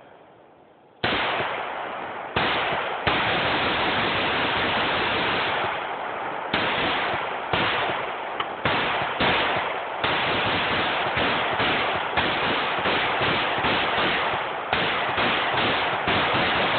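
A rifle fires shot after shot outdoors, each bang ringing out across the open air.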